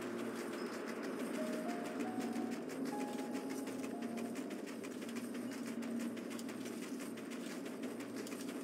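Footsteps of a running mount thud softly on snow.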